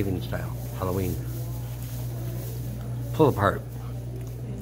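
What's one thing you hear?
A middle-aged man speaks with animation close by.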